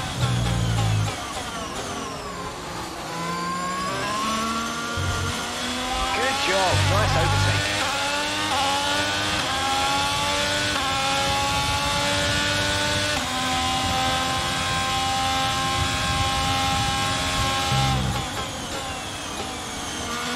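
A racing car engine screams, rising in pitch through the gears and dropping as it slows for a corner.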